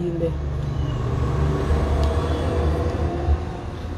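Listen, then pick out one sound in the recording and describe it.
A woman gulps a drink.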